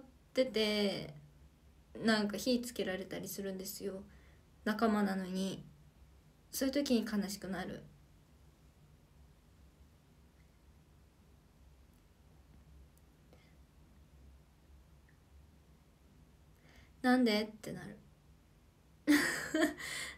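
A young woman speaks calmly and close up, in short bursts with pauses.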